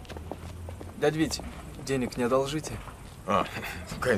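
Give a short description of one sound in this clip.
Another man answers calmly outdoors.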